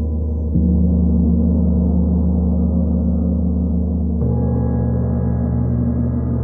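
Large gongs hum and drone with a deep, steady resonance.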